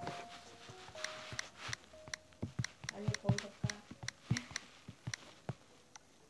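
Fingers tap quickly on a touchscreen keyboard.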